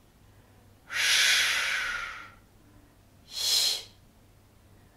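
A woman close by breathes out in long, hissing breaths.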